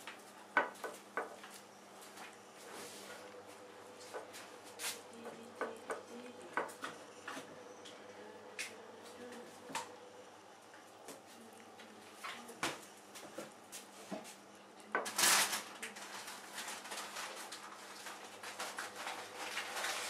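A cat eats close by, with wet chewing and licking sounds.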